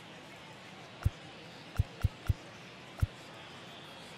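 Short menu clicks sound several times in quick succession.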